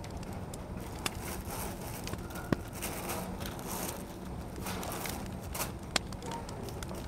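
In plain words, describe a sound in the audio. A paper bag rustles and crinkles in someone's hands.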